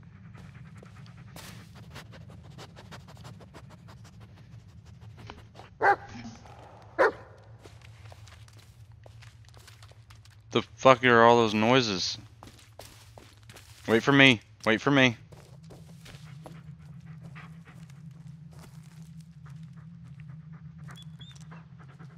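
A dog patters over leaf litter.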